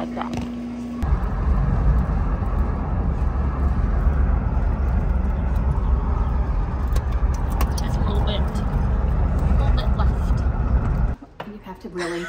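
A car engine rumbles steadily inside a moving car, with road noise.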